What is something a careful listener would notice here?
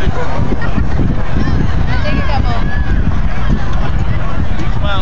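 Children and adults chatter and call out close by, outdoors.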